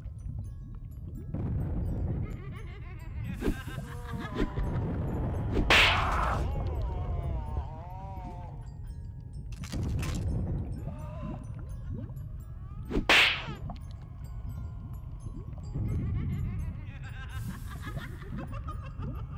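Hands punch toy figures with dull thumps.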